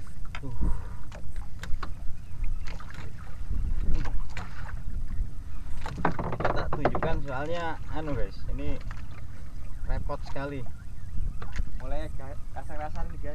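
Wind rumbles over open water outdoors.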